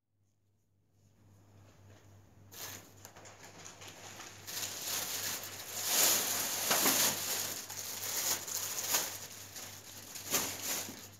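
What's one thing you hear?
Plastic bags rustle as items are moved around in a wire shopping cart.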